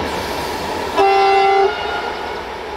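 A train horn sounds a short blast.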